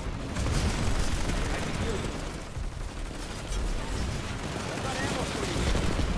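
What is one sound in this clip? Energy guns fire in rapid bursts.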